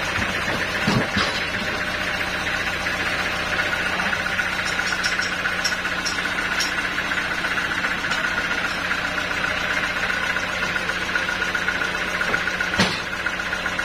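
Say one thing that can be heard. A heavy log thuds onto a sawmill carriage.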